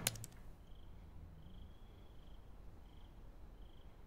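Fingers tap quickly on a laptop keyboard.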